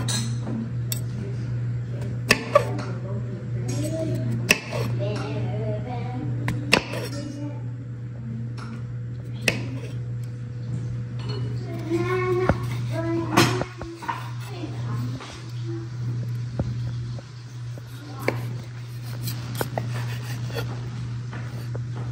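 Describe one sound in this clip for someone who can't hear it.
A knife cuts through soft food and taps on a wooden board.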